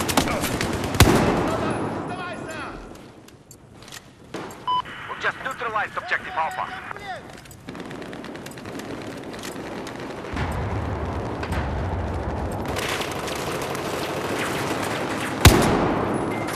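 A rifle fires a loud sharp shot that echoes.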